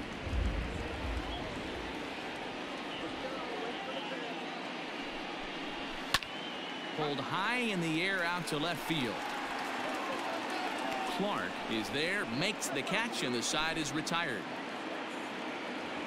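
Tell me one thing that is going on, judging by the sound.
A crowd murmurs and cheers in a large stadium.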